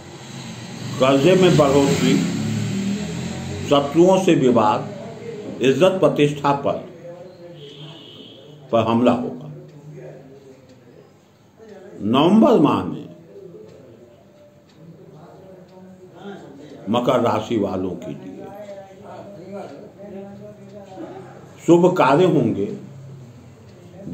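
An elderly man speaks slowly and calmly close by, with long pauses.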